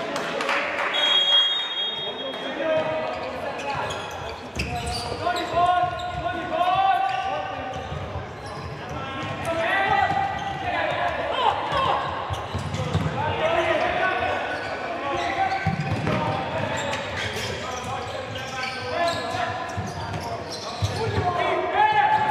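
Sneakers squeak on a hard court in a large echoing hall.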